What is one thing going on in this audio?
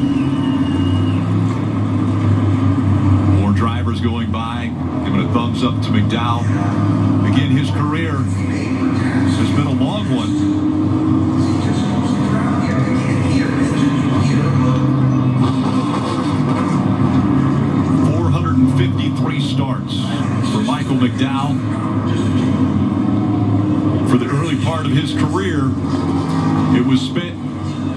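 Race car engines roar steadily through a television speaker.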